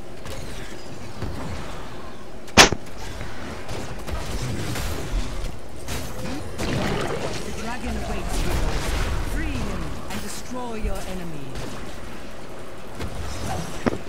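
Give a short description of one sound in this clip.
Video game combat effects clash and burst in quick succession.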